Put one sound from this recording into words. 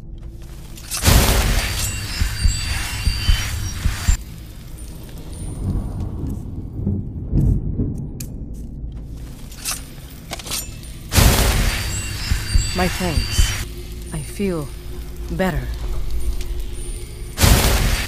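A magic healing spell shimmers and hums in a video game.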